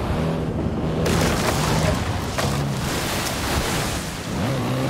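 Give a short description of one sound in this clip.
Water splashes as a car drives through it.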